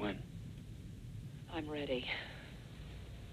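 A woman speaks in a soft, strained voice close by.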